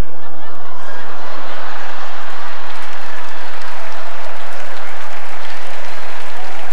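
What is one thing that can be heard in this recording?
A large audience laughs loudly in an echoing hall.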